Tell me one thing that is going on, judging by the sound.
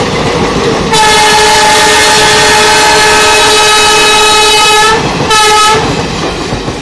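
A train horn blares long and loud, then blasts once more briefly.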